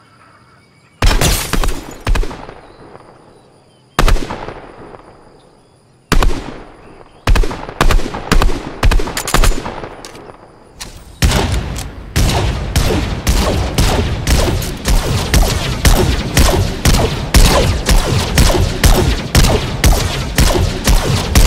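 Rifle shots ring out one after another, with echoing tails, then come in rapid bursts.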